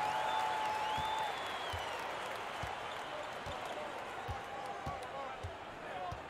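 A basketball bounces on a hardwood floor in steady dribbles.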